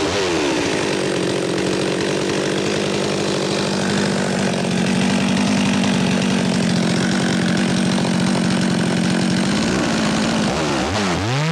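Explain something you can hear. A chainsaw engine idles steadily.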